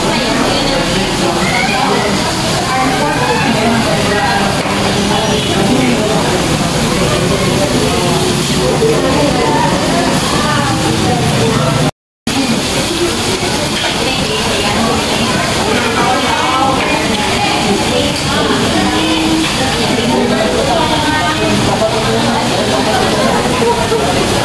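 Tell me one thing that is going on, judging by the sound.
Many voices chatter in a busy, echoing room.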